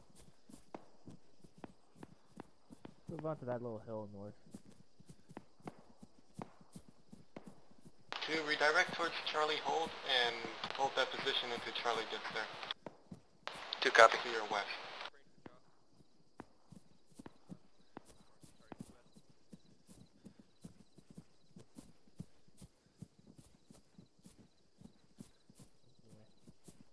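Footsteps crunch through grass at a steady walking pace.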